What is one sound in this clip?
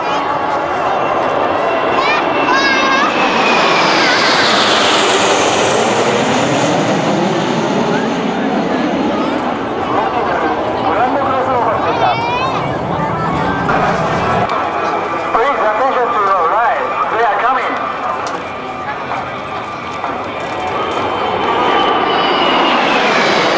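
Jet engines roar overhead, rising and falling as the planes sweep past.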